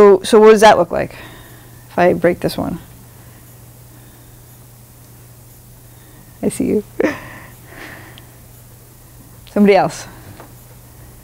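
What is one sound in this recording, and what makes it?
A woman speaks in short bursts, with long pauses between phrases.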